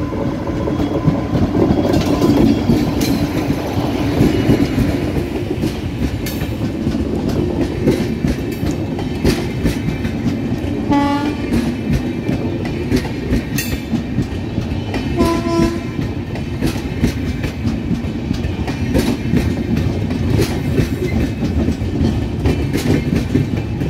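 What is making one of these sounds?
A long train rumbles steadily past close by.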